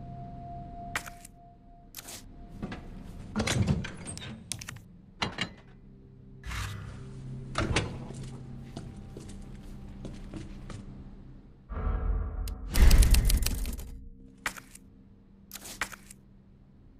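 Short menu clicks and chimes sound again and again.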